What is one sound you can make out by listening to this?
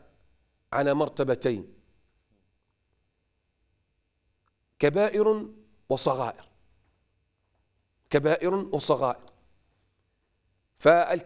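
A middle-aged man speaks calmly and earnestly into a close microphone, in short phrases with pauses.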